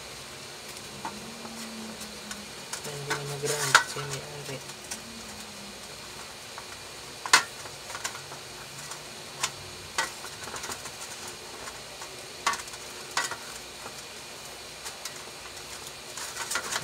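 Small clicks and knocks sound as wires are handled against a metal housing.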